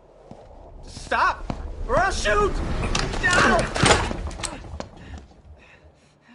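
A man shouts in panic.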